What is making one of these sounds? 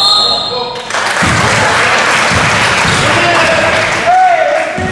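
A crowd of spectators cheers in an echoing gym.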